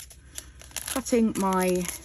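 A small plastic packet crinkles between fingers.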